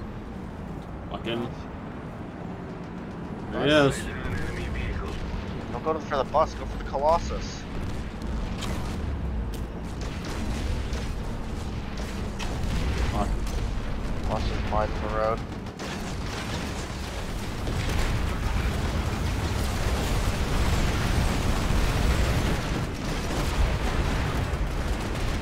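A heavy tank engine rumbles low and steady.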